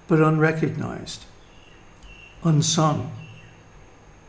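An elderly man speaks calmly and close by, in short phrases.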